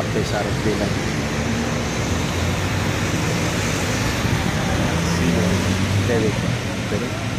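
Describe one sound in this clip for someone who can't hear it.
A bus engine hums as it drives past.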